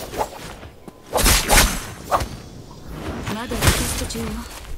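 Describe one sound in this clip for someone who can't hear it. Metal blades clash in quick, sharp blows.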